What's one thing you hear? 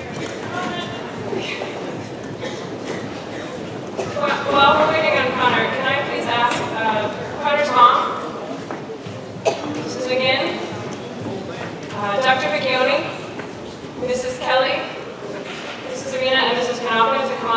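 A large band plays music in a big echoing hall.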